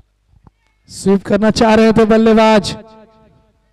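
A young man shouts loudly outdoors, some distance away.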